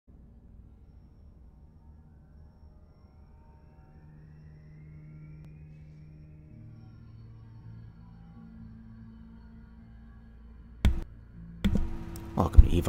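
A deep, low engine hum drones steadily and slowly swells.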